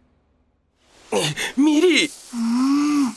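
A young man cries out.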